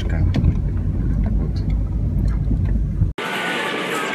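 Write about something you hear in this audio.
A car engine hums low and steady from inside a moving car.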